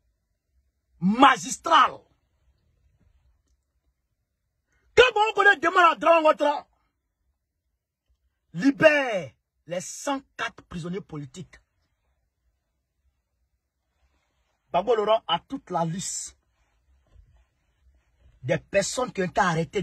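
A man speaks animatedly close to the microphone, in bursts with pauses.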